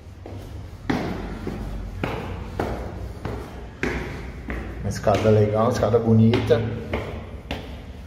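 Footsteps climb hard stairs.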